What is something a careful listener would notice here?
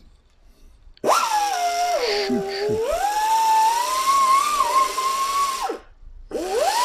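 A power tool whines loudly, speeding up and slowing down in pitch.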